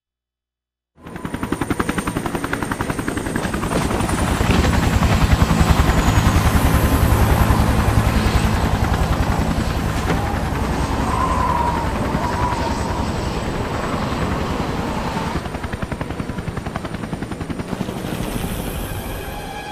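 Helicopter rotors thump rapidly and steadily close by.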